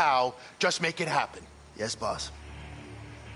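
A man speaks firmly and curtly.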